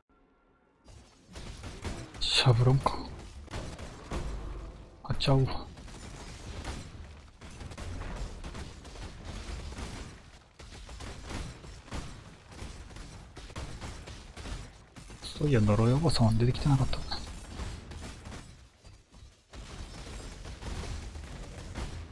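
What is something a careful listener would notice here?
Magic blasts and crackles burst in quick succession during a fight.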